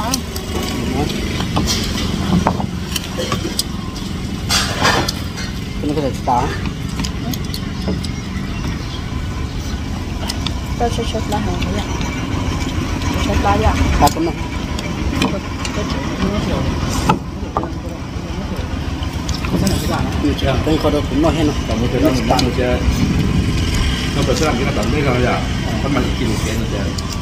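Chopsticks and spoons clink against bowls.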